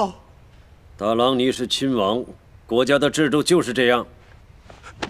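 A middle-aged man speaks calmly and firmly.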